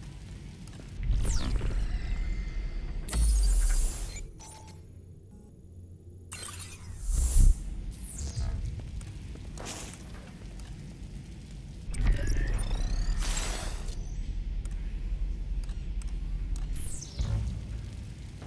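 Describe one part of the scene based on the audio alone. Electronic whooshes and beeps sound as a menu opens and closes.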